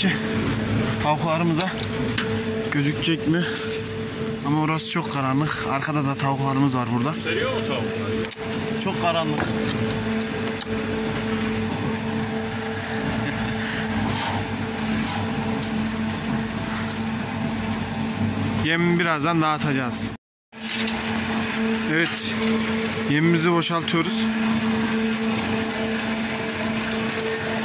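A machine hums and rattles steadily.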